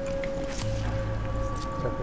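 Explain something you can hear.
Water rushes and splashes.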